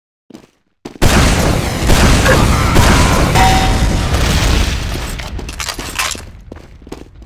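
Loud gunfire and explosions boom close by.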